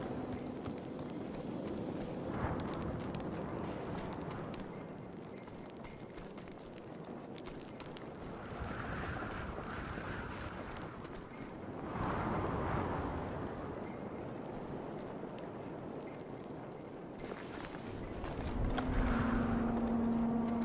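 Footsteps crunch over rocky, gritty ground.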